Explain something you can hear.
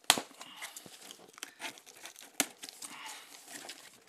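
Cardboard flaps rustle and scrape as a box is opened.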